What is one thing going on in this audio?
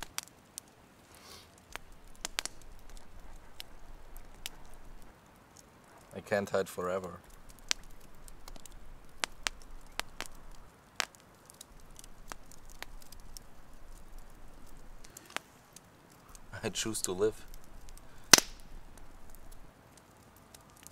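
A campfire crackles and pops close by.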